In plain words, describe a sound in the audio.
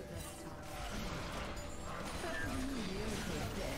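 Magical spell effects whoosh and crackle during a fight.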